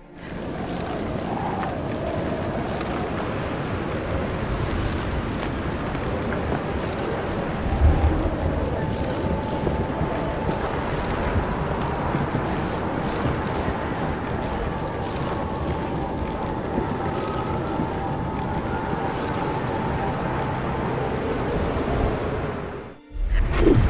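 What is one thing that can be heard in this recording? A strong wind howls through a snowstorm.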